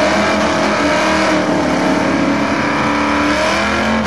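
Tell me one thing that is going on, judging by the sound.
Tyres squeal and screech as a car spins its wheels in a burnout.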